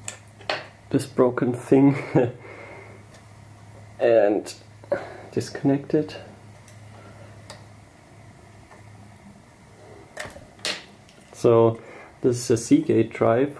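Cables and metal parts click and rattle as they are handled.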